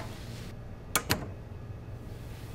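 A door handle clicks as it turns.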